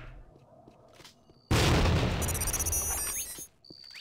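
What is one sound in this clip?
A weapon clicks as it is switched and reloaded.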